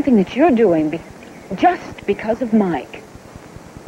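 A woman speaks calmly up close.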